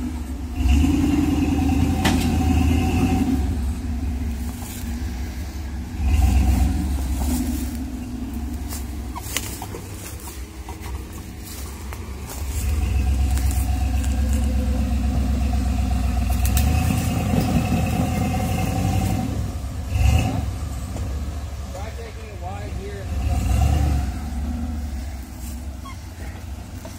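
Tyres scrape and grind over rocks.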